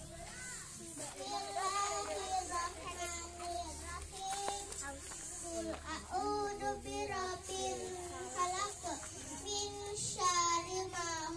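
A young girl speaks into a microphone, reciting steadily.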